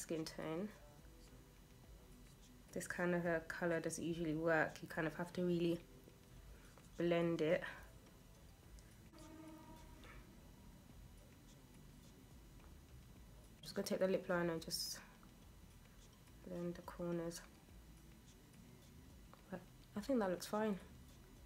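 A young woman talks calmly and close by, in short bursts with pauses.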